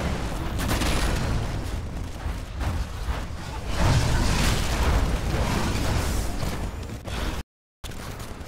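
Gunfire and explosions boom and rattle loudly.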